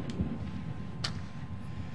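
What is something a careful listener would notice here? A flashlight knocks lightly against a wooden tray.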